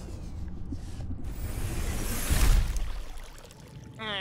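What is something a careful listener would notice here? A hatch door opens with a loud whoosh.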